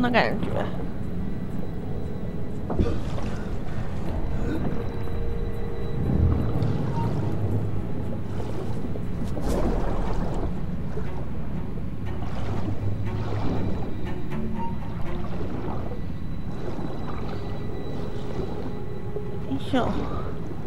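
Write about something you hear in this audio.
Water swirls and rushes in a low, muffled underwater drone.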